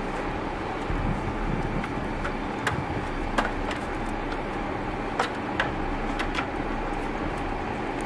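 Shoes scuff and knock on a metal ladder as a boy climbs.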